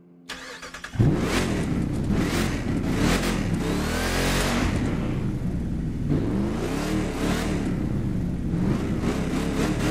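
A truck engine idles loudly and revs up and down.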